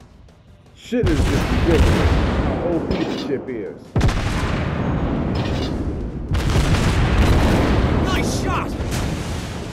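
Heavy guns fire with loud, deep booms.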